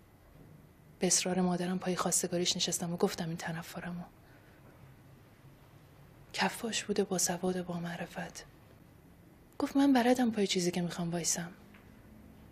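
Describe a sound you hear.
A woman speaks softly and slowly in short phrases.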